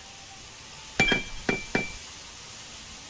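Sharp metallic clinks ring out three times in quick succession.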